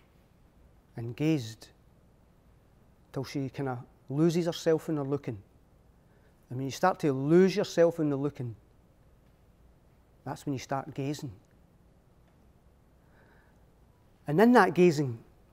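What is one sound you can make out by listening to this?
An older man speaks expressively in phrases with pauses, close and clear.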